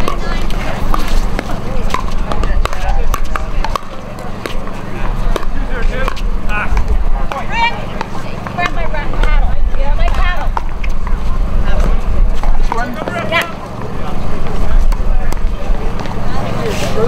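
Paddles sharply pop against a plastic ball in a quick rally.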